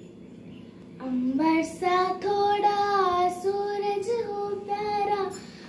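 A young girl sings a slow melody into a microphone.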